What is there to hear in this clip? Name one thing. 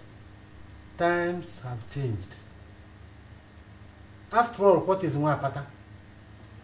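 An elderly man speaks slowly and closely.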